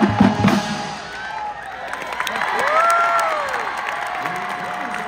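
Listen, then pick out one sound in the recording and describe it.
A marching band's brass plays sustained notes.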